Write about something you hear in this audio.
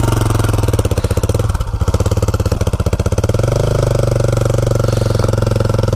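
A dirt bike engine pulls under load, towing another bike.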